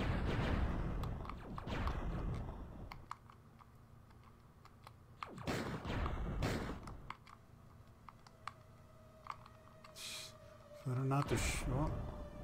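Arcade game explosions burst loudly.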